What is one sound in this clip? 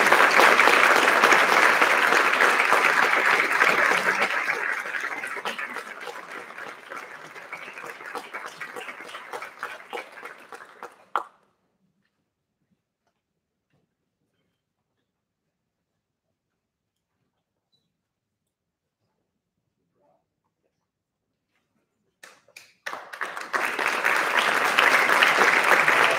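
An audience applauds loudly in an echoing hall, then the clapping slowly dies away.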